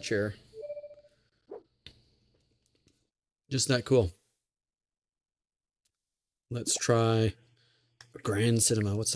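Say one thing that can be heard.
A man speaks with animation, close into a microphone, in short bursts.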